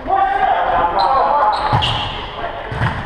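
Sneakers squeak on the hall floor.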